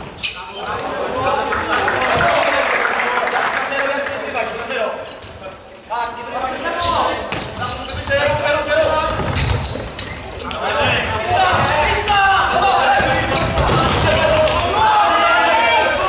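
Players' shoes squeak on a hard floor in an echoing hall.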